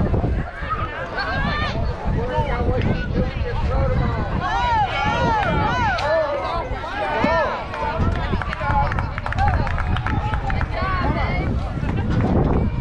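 Young girls cheer and chant loudly outdoors.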